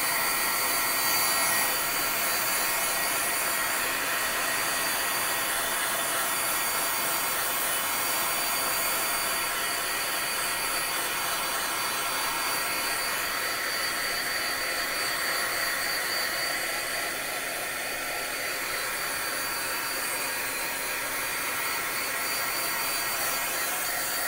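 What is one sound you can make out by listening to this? A heat gun blows with a steady, loud whoosh close by.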